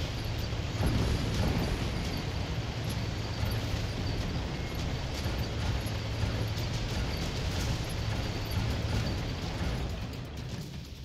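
Wheels crunch over rough gravel.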